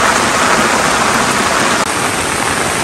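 Rain splashes into a barrel of water.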